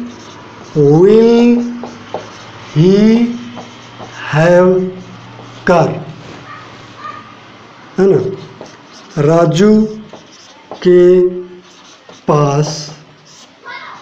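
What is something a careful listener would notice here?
A young man speaks slowly and clearly nearby, in short phrases with pauses.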